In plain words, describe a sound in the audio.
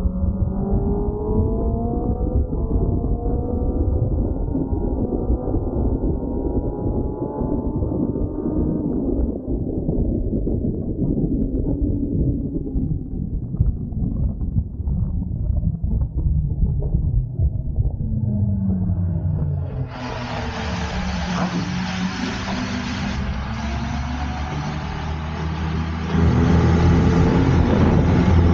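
A motorcycle engine roars at high revs, rising in pitch as it accelerates.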